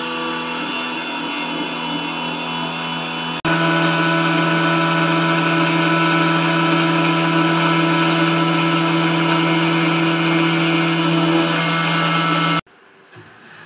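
A milling machine hums loudly.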